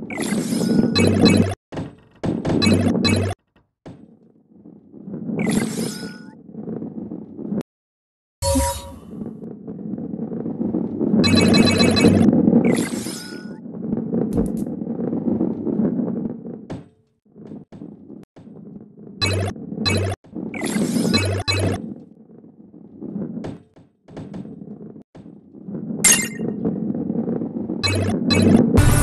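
A ball rolls along a wooden track with a low rumble.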